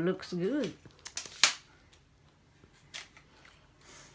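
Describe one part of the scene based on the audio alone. Plastic and metal parts of a tripod click and clatter as a man handles it.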